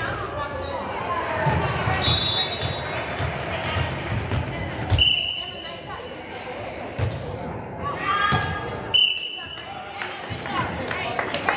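Girls chatter and shout in a large echoing gym.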